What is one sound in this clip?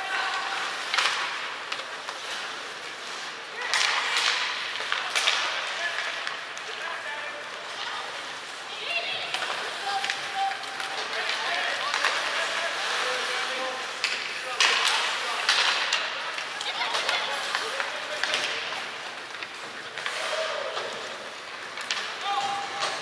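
Hockey sticks clack sharply against a puck.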